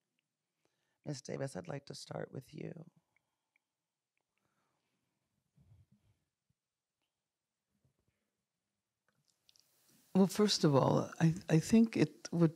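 An elderly woman speaks calmly into a microphone, with pauses.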